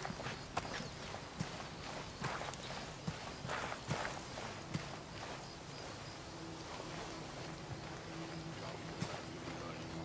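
Plants rustle and swish as someone pushes through them.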